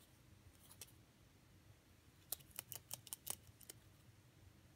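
A rabbit gnaws and crunches on a pine cone in short bursts.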